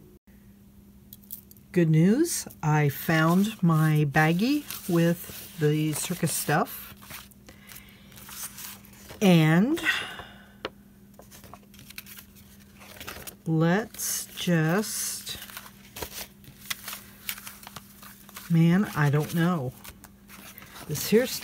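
Sheets of paper rustle and slide against each other as they are handled.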